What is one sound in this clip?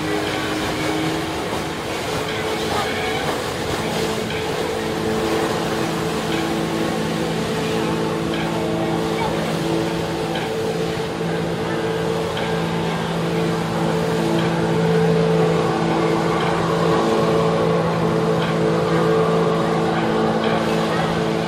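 Water jets roar from a flyboard.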